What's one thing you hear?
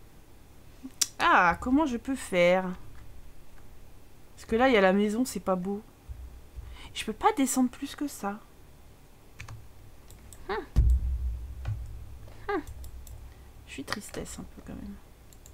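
A young woman talks with animation close to a microphone.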